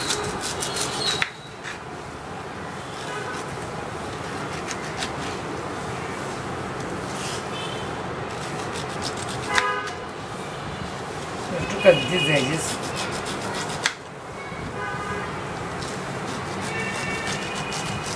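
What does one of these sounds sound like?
A knife cuts through a pineapple.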